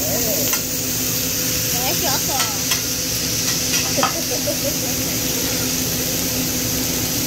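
Meat sizzles steadily on a hot griddle.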